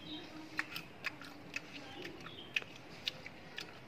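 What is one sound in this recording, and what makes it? Peanut shells crack between a man's fingers.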